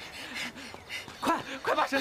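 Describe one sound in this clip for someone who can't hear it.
A young woman runs, her footsteps quick.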